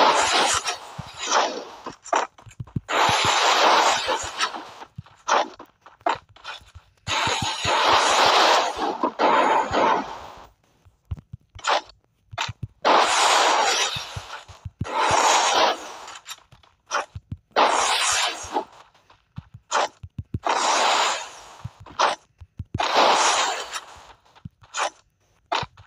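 Ice walls burst up with a crackling rush, again and again.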